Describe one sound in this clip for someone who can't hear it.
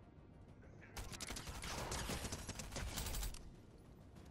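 Rapid gunfire rattles in a loud burst.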